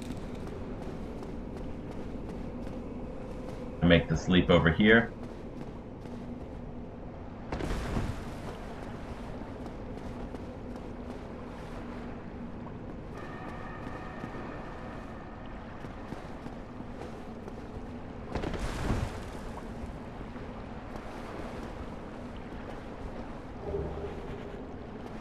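Armoured footsteps run on stone steps.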